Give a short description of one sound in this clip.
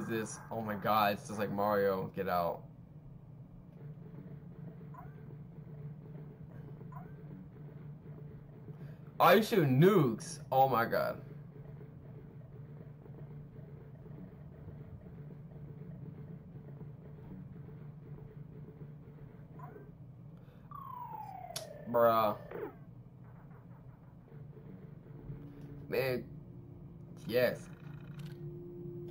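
An old computer terminal hums steadily.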